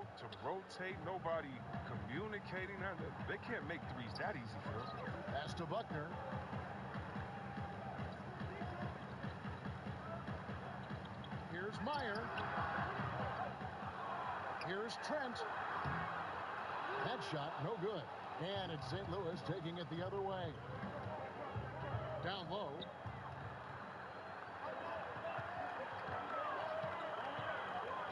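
A basketball bounces with steady thumps.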